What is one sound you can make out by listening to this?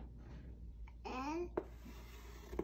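A young child babbles softly nearby.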